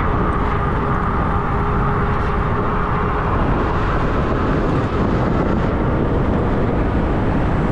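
Bicycle tyres hum on a paved road.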